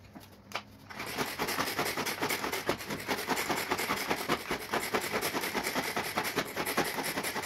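A hand chopper whirs and rattles as its cord is pulled again and again.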